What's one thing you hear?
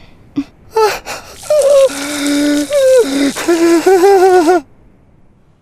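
A young man screams loudly in shock.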